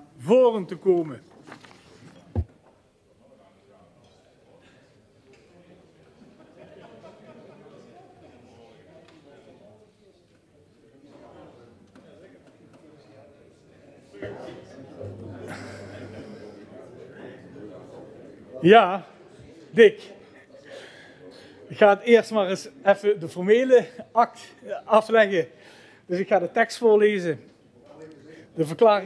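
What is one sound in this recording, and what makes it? An older man speaks calmly through a microphone.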